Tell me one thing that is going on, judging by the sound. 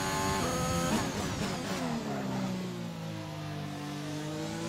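A racing car engine drops sharply in pitch as the car slows for a corner.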